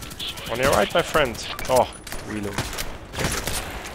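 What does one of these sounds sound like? Metal clicks and clacks as a rifle is reloaded.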